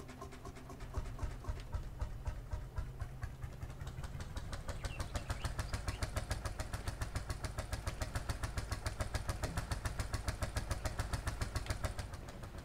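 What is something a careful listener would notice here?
A tractor engine chugs loudly as the tractor drives off.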